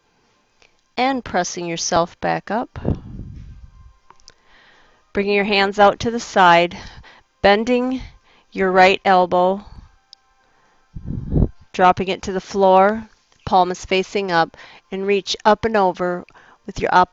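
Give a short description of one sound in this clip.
A woman speaks calmly and clearly into a headset microphone.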